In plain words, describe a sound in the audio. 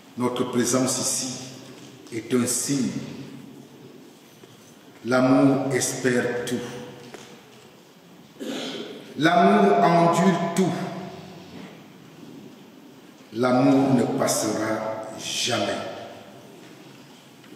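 A man speaks slowly and solemnly into a microphone in an echoing hall.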